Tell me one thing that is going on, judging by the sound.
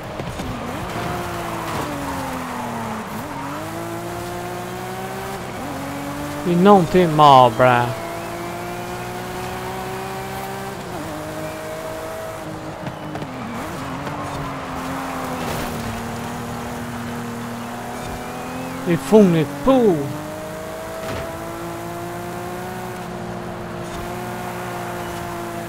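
A car engine roars and revs up and down as it races.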